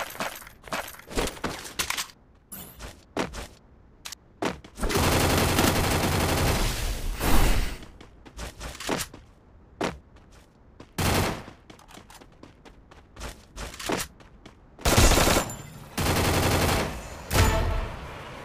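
Footsteps patter quickly across the ground.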